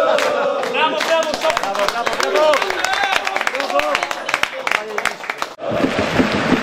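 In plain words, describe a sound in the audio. Men laugh and cheer loudly close by.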